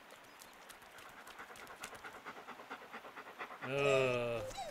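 Paws patter quickly on pavement.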